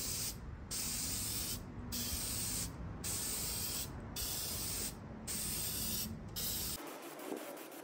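A spray can hisses in short repeated bursts.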